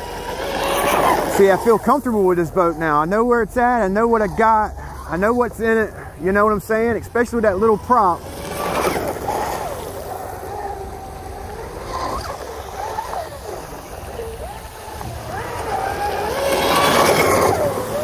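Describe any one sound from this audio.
A small motor whines loudly and rises and falls in pitch.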